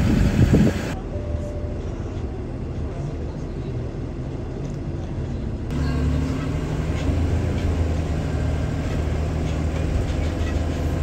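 A vehicle engine hums steadily from inside the cab.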